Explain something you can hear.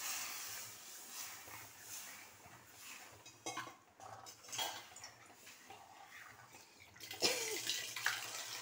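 A metal ladle stirs thick gravy, scraping and clinking against a metal pot.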